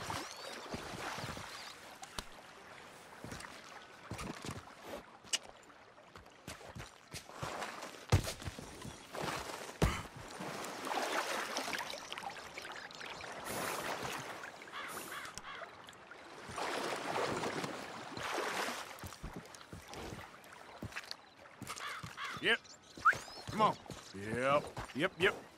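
Footsteps crunch and scrape on rock.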